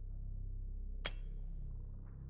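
A game menu button gives a short click.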